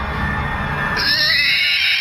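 A baby cries loudly and shrilly.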